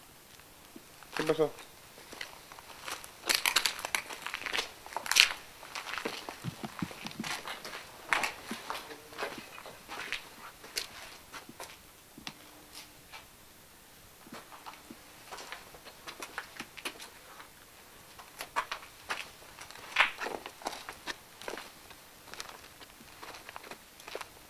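Footsteps crunch and shuffle over debris close by.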